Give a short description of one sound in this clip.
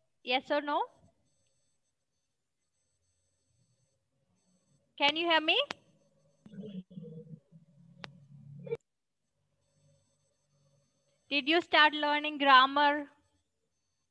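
A child speaks in short, lively bursts over an online call.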